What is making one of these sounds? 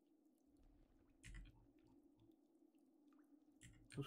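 Water splashes as a large sea creature swims.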